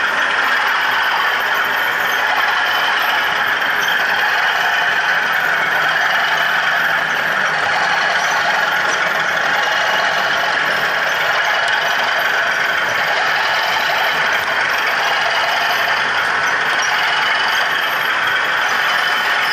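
Model diesel locomotives hum and whir steadily as they roll along the track.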